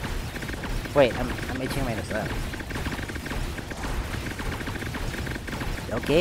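Rapid electronic shooting effects from a game patter steadily.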